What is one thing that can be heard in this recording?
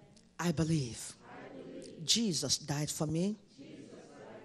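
A woman speaks with emotion through a microphone in an echoing hall.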